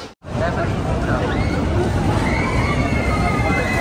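Roller coaster wheels squeal and screech on the rails.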